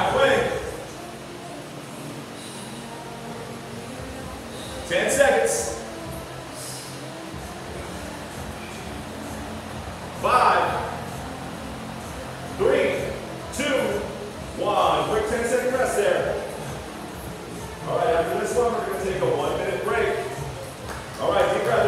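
A man calls out instructions loudly in an echoing room.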